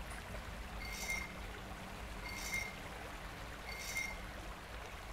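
Metal masks click into place on a puzzle board.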